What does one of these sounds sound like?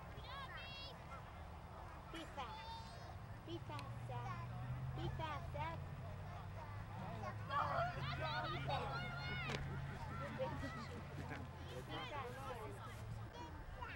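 Adults talk and cheer from the sideline.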